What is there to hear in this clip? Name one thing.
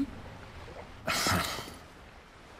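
A young man speaks briefly in surprise close by.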